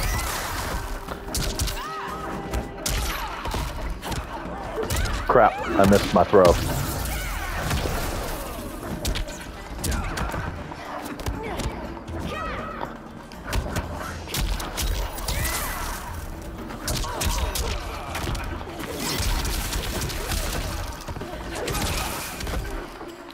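Punches and kicks land with heavy thuds and smacks.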